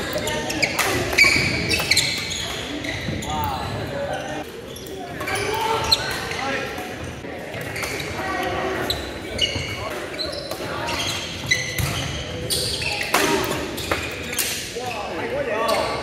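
Rackets hit a shuttlecock with sharp pops, back and forth.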